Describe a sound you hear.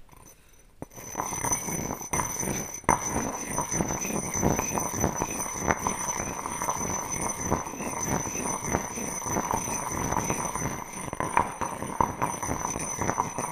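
A stone pestle grinds and scrapes inside a stone mortar close to a microphone.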